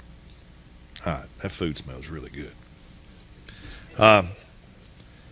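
A middle-aged man speaks with emphasis through a microphone in a large room.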